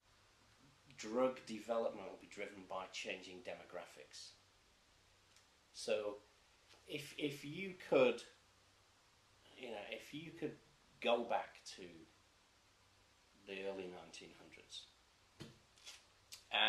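A middle-aged man speaks calmly and thoughtfully into a nearby microphone.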